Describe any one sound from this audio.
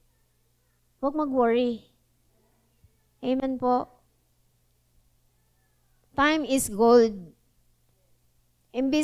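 A young woman speaks slowly into a microphone, with long pauses.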